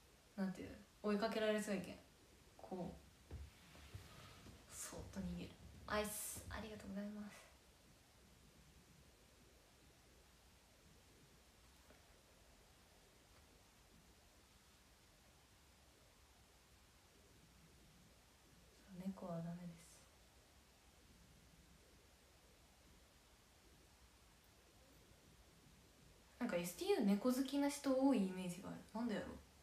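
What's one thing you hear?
A young woman speaks calmly and close up, in short bursts with long pauses.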